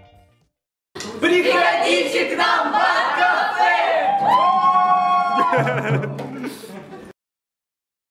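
Young men and women sing together loudly with animation.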